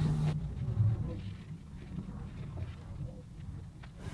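A hand rubs across a wooden board.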